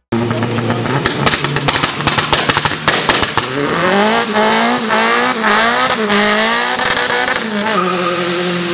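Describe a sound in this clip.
A car engine revs loudly and roars.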